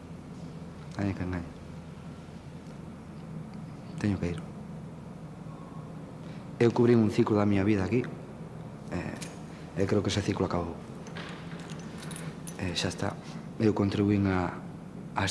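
A man speaks calmly in short bursts, close by.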